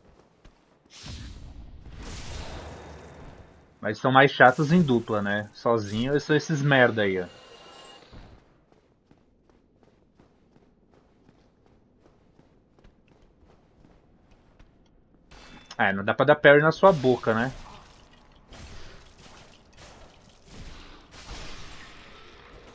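Sword blows clash and thud in a game fight.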